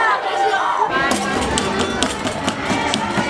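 A tambourine jingles and thumps in quick beats.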